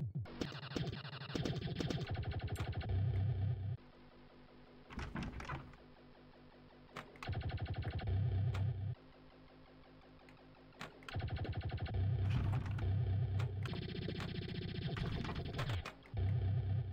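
Electronic pinball game music plays with a pulsing beat.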